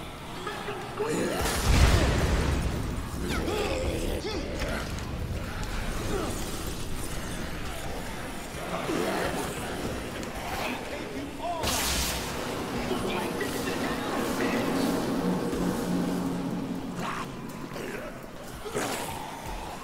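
Zombies groan and snarl.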